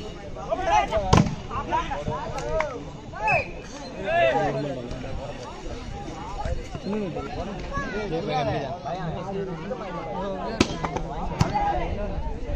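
Young men shout and call out loudly across an outdoor court.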